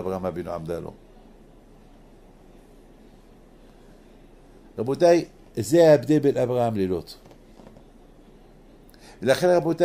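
An elderly man speaks calmly and slowly, close by, with pauses.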